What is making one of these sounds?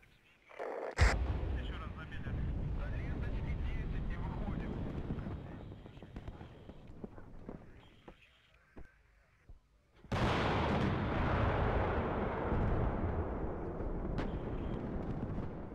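Heavy explosions rumble in the distance.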